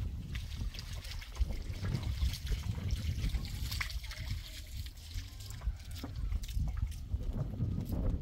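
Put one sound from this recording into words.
Water splashes from a bucket onto soil.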